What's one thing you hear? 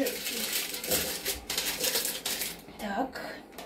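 A plastic basket scrapes and rattles as it slides out of a fryer.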